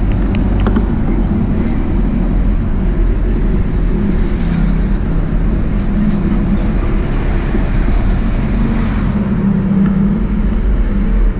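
Wind rumbles loudly over a microphone outdoors.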